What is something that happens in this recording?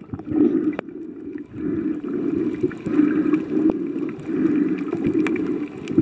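A snorkeler breathes out, and bubbles gurgle and rumble underwater close by.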